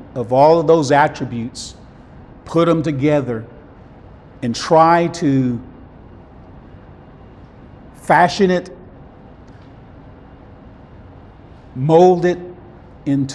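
A middle-aged man speaks with animation into a clip-on microphone, in short bursts with pauses.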